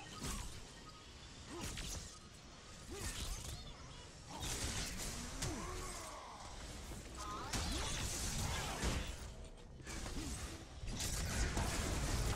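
Blows thud as fighters clash.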